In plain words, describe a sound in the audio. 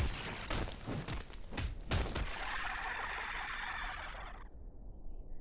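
A magic blast crackles and bursts loudly.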